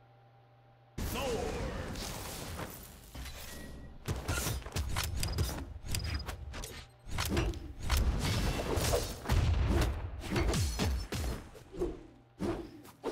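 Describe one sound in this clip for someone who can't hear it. Game weapons clash and blows land with sharp hits and whooshes.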